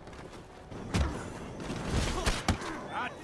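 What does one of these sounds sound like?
A man falls and lands with a heavy thud.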